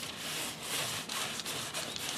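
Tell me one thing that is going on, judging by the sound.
A paper towel wipes across tooled leather.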